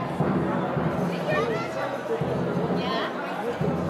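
A young woman talks encouragingly nearby.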